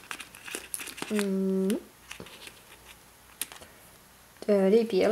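Plastic paint tubes click and rustle softly as fingers lift them.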